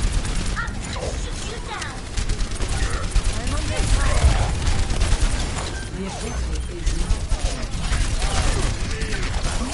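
Laser beams buzz and crackle.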